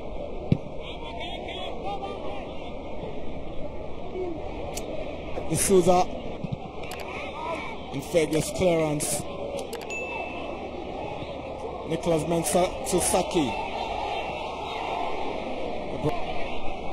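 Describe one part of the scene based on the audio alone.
A crowd murmurs and cheers in open stands.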